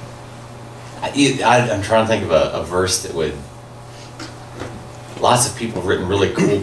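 A middle-aged man speaks calmly through a microphone.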